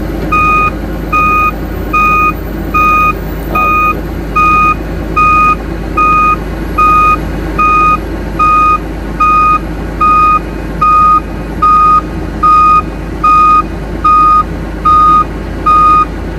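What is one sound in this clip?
Heavy diesel engines rumble steadily nearby.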